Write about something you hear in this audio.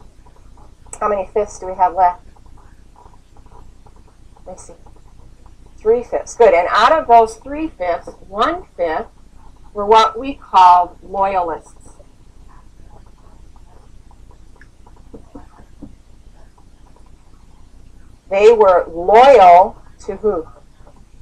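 A young woman speaks close by in short bursts.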